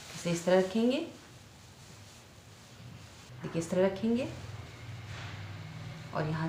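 Fabric rustles softly as it is folded.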